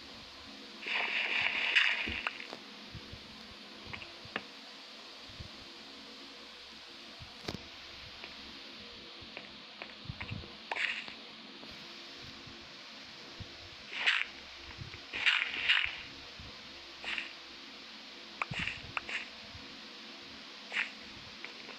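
Stone blocks crack and crumble as they are mined in a game.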